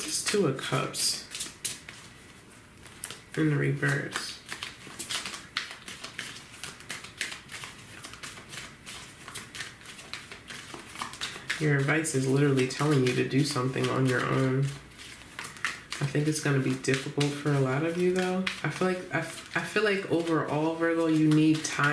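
Cards are shuffled by hand with soft flicking and riffling.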